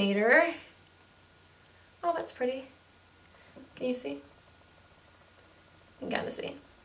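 A young woman talks to the listener in short phrases, with animation, close to a microphone.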